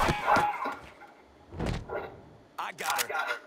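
A man speaks in surprise, close by.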